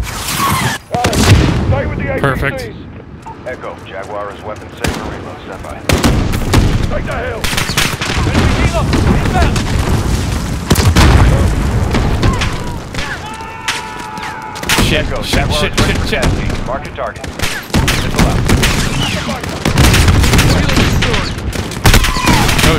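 Explosions rumble and boom.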